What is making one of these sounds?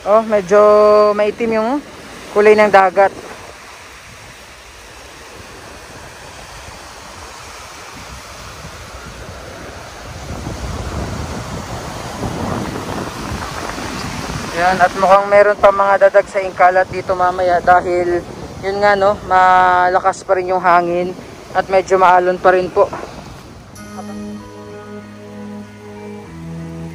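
Small waves wash and lap gently onto a shore.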